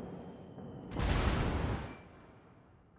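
Shells splash into the water with loud explosive bursts.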